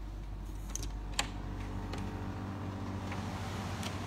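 A glass door clicks open.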